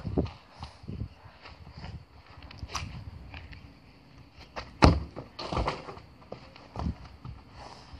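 A foot kicks a football with a dull thud.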